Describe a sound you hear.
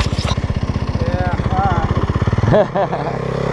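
A dirt bike engine idles with a steady, pulsing chug.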